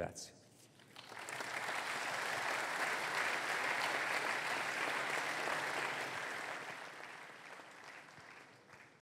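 An audience applauds steadily and then slowly fades.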